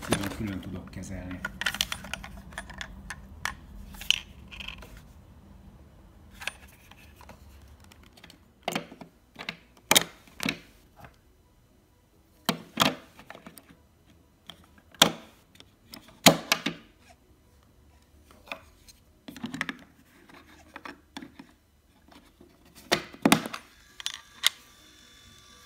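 Plastic parts click and knock as they are handled close by.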